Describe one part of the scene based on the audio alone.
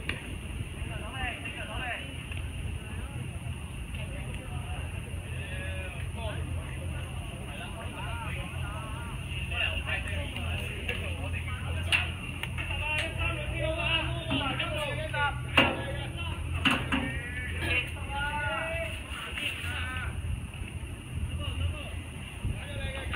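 Young players shout and call out across an open field from a distance.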